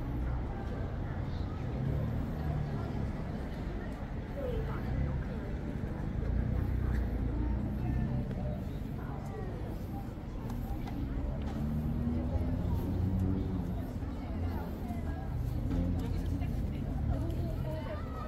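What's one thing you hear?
A crowd of men and women chatters at a distance outdoors.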